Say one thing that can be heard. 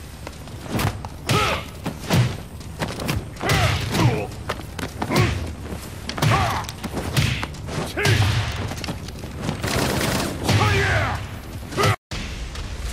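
Heavy punches land with loud thuds.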